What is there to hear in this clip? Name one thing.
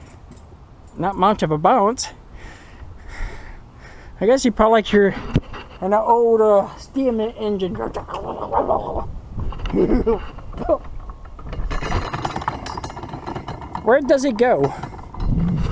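A man talks with animation close to the microphone, outdoors.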